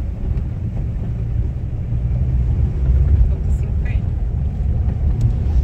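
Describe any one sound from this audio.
Tyres crunch and rattle over a dirt road.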